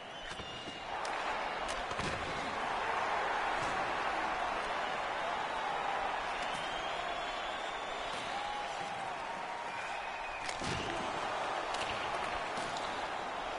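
A large crowd roars in a big echoing arena.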